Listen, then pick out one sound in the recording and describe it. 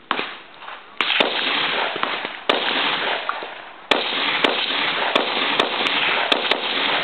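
A rifle fires loud shots outdoors.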